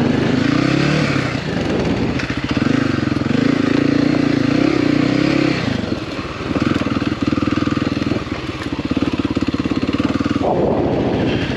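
A dirt bike engine revs up and down as it rides along.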